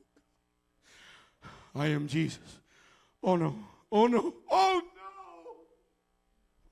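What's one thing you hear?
A man preaches loudly and with passion through a microphone in a large echoing hall.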